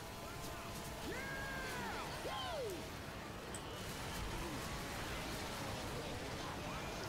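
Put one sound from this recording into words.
A zombie snarls and groans.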